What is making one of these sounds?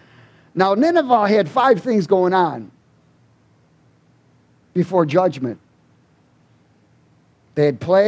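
A middle-aged man speaks with animation into a headset microphone, with pauses between phrases.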